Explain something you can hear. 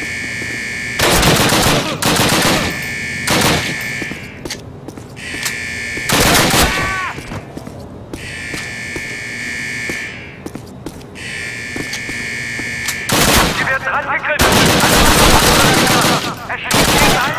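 A submachine gun fires loud rapid bursts that echo in a narrow corridor.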